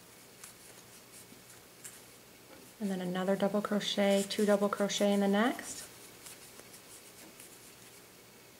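A crochet hook softly rubs and pulls through yarn.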